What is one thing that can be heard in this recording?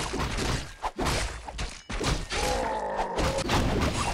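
Game swords clash and clang in a battle.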